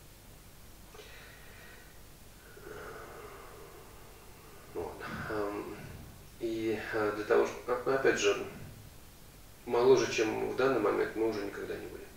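A man speaks slowly and calmly into a close microphone, with pauses.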